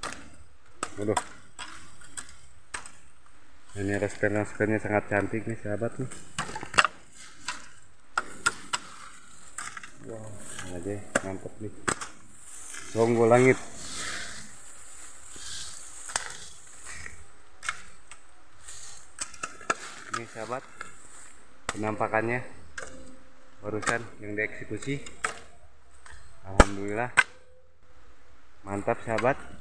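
A machete chops into bamboo with sharp knocks.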